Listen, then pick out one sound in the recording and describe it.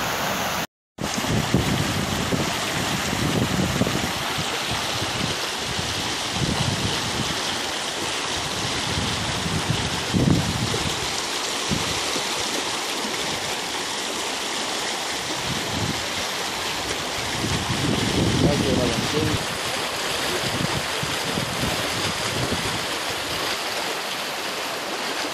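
Muddy floodwater rushes and gurgles close by.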